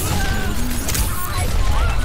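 A laser beam fires with a sizzling crackle.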